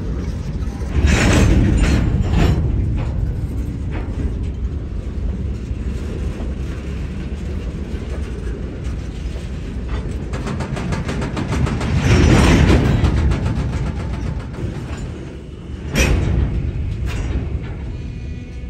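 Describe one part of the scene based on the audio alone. Steel wheels clank and squeal over the rail joints.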